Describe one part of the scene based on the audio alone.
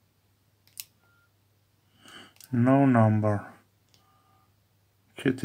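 A mobile phone gives short electronic beeps.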